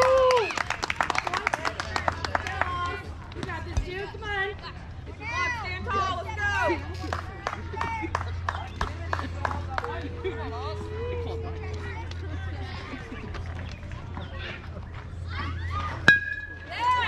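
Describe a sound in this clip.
Young players call out to each other across the field.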